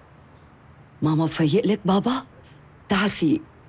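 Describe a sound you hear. A middle-aged woman speaks quietly and close by.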